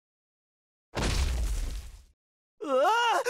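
A heavy thud rings out as two heads collide.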